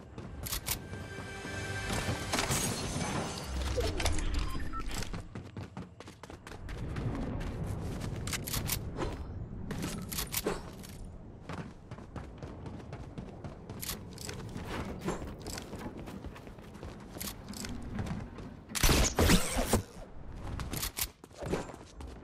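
Footsteps run quickly over hard floors.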